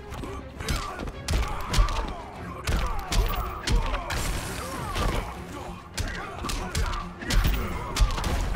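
A character grunts and yells in combat.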